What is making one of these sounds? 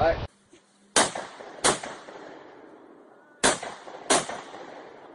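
A rifle fires several sharp shots outdoors.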